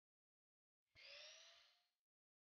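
A miter saw blade whines as it spins.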